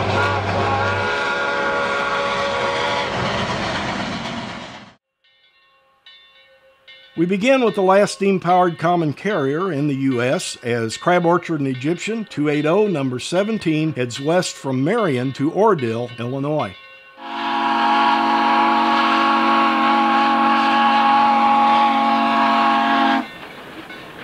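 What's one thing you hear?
A steam locomotive whistle blows loudly.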